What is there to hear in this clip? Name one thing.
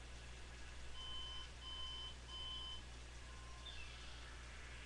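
A television beeps in short, even tones as its volume is stepped up.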